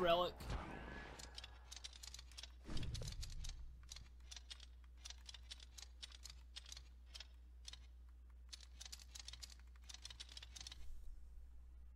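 Short menu ticks click in quick succession.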